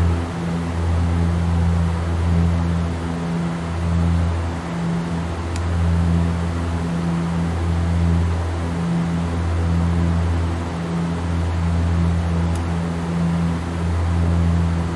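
Aircraft engines drone steadily with a low, pulsing hum.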